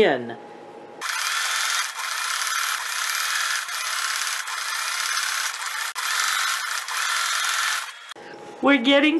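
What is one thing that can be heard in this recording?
A sewing machine runs, stitching rapidly.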